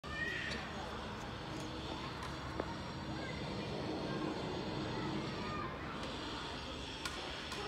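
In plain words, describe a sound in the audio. Children's feet shuffle and step on pavement as they dance.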